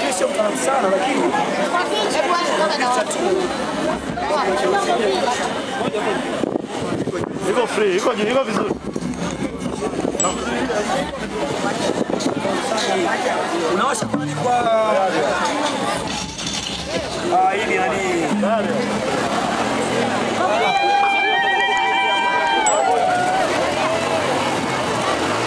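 A crowd of men and women chatters and cheers loudly outdoors.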